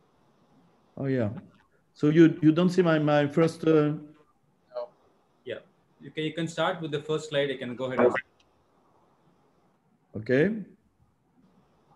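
A second middle-aged man answers over an online call.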